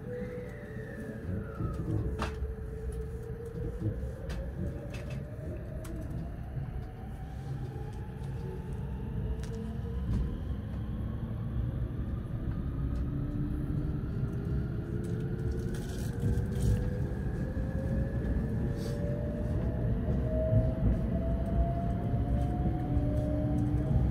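Wheels of an electric express train rumble over the rails, heard from inside.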